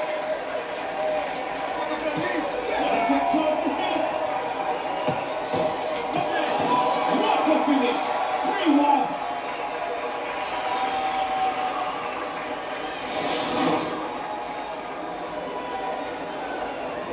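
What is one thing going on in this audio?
A crowd cheers and murmurs through a television's speakers.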